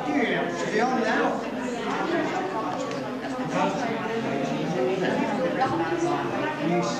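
Middle-aged women chat close by, with overlapping voices.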